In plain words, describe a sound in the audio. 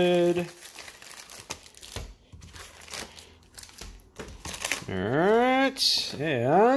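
Foil packets crinkle and rustle.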